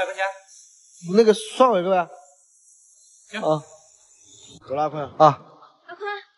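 A man asks questions close by.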